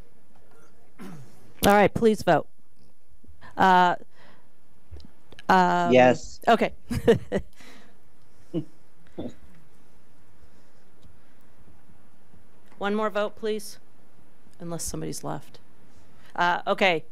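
An older woman speaks briefly and calmly through a microphone, with pauses.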